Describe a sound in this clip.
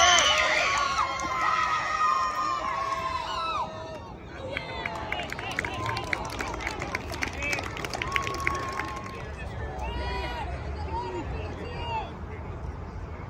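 Young players shout and cheer outdoors.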